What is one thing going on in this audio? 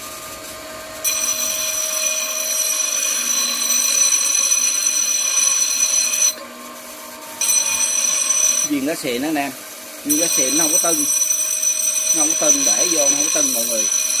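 Metal grinds against a spinning wheel with a harsh, high screech, in several bursts.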